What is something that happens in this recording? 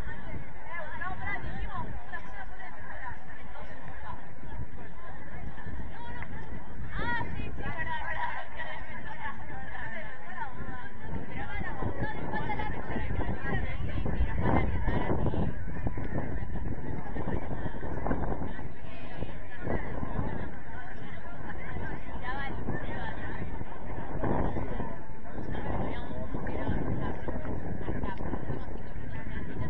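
Young men shout and call to each other across an open pitch outdoors.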